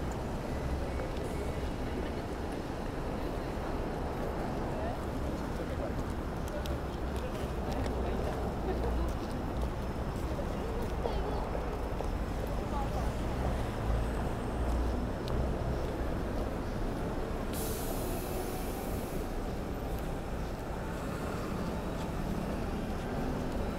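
City traffic hums steadily outdoors on a wet night.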